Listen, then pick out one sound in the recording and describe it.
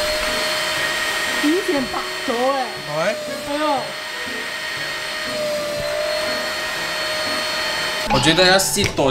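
A handheld vacuum cleaner hums steadily.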